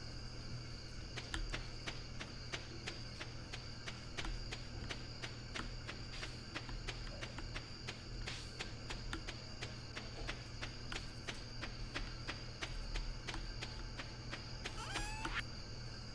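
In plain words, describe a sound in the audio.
Footsteps patter quickly and steadily on soft ground.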